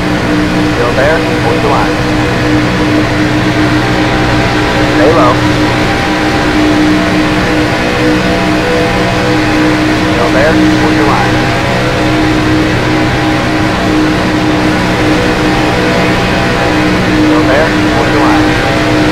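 A race car engine roars steadily at high speed.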